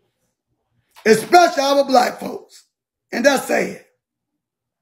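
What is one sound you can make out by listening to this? A middle-aged man speaks in short bursts close to a phone microphone.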